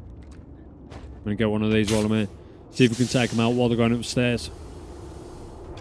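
Metal clanks as a lever in a machine panel is pulled.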